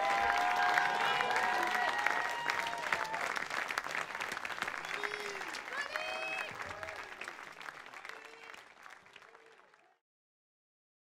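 A large crowd applauds, and the applause slowly fades away.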